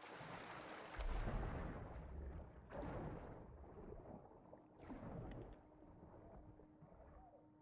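Bubbles gurgle and rush underwater, muffled.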